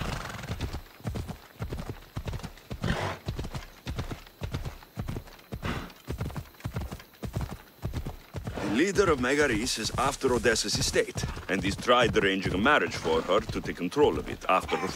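A horse gallops with quick, rhythmic hoofbeats on a dirt path.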